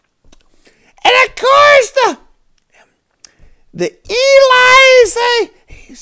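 A man sings loudly and strainedly, close to a microphone.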